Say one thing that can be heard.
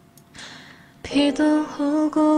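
A young woman sings into a microphone, close and clear.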